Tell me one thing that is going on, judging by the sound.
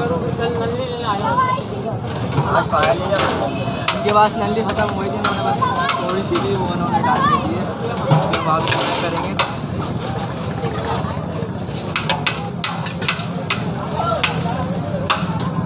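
A busy crowd murmurs in the background.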